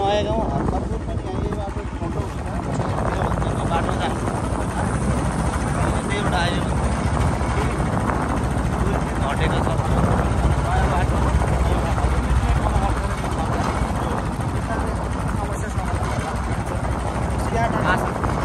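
A motorbike engine hums steadily while riding on a dirt road.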